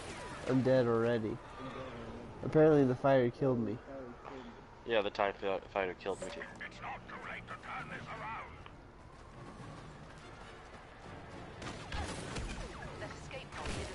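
Explosions boom with scattering sparks.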